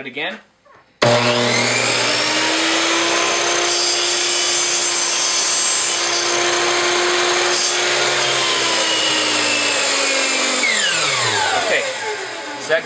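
A power saw starts with a loud whine, runs steadily, then winds down.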